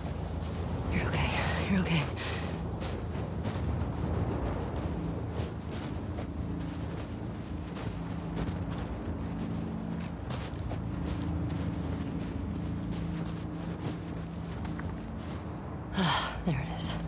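A young woman speaks softly and breathlessly.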